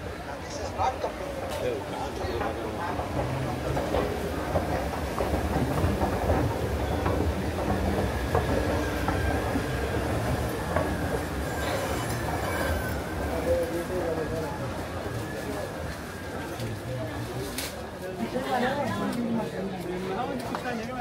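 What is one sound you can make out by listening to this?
Voices of a crowd of shoppers murmur all around in a large echoing hall.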